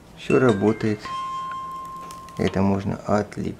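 A small electronic device beeps as it is switched on.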